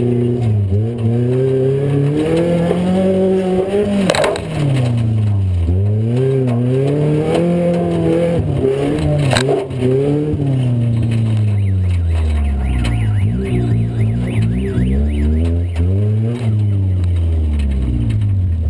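A car engine roars and revs up and down loudly from inside the car.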